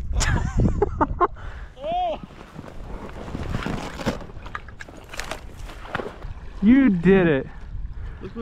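Water splashes as a person wades through a shallow marsh.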